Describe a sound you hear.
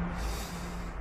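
A woman speaks softly and anxiously.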